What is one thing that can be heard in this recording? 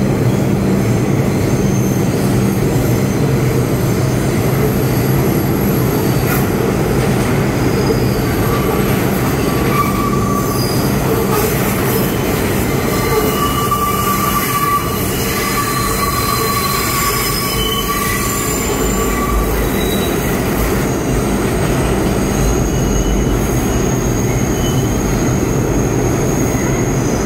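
A subway train rumbles loudly into the station.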